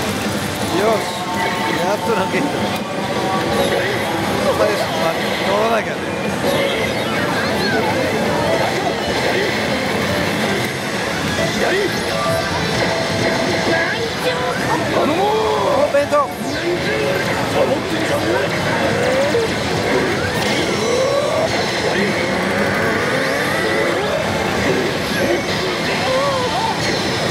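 A slot machine plays loud, busy electronic music.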